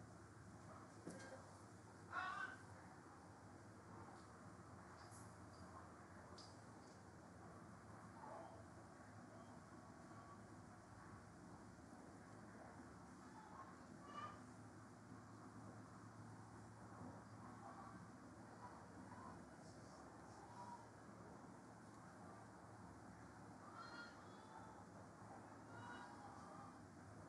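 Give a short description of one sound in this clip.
Young women shout to each other in the distance across an open field.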